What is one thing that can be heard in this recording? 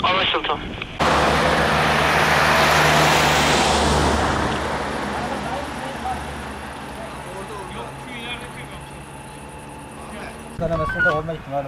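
A van drives past on the road.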